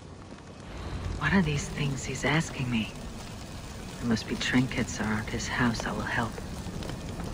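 A person speaks calmly, close by.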